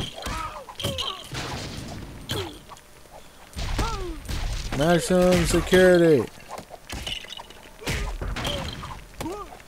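Blows land with quick punching thuds in a fight.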